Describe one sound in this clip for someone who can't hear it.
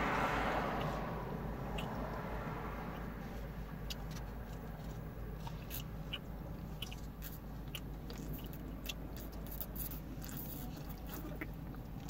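A woman gulps water from a plastic bottle close to the microphone.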